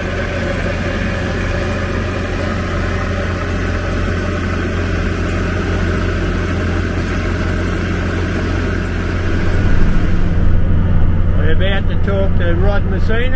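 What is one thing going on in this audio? An engine hums steadily at idle.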